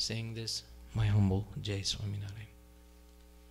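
A man speaks into a microphone close by.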